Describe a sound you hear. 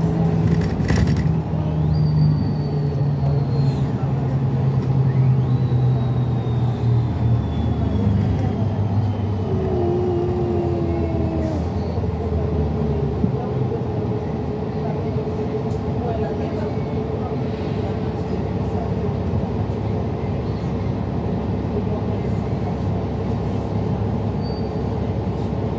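A bus engine rumbles steadily, heard from inside the bus.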